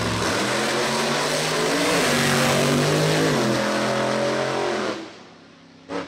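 A race car engine roars loudly as the car speeds away.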